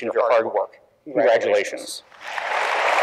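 A man announces through a microphone in a large echoing hall.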